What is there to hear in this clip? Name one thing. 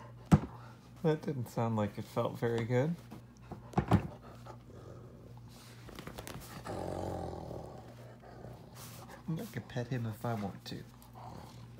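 A dog whines and grumbles in a wavering, talkative voice close by.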